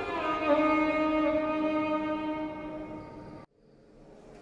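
A violin plays a slow, sustained melody close by.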